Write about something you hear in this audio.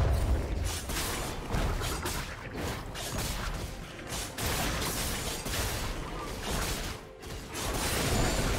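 Video game spells and blows crackle and thud in a battle.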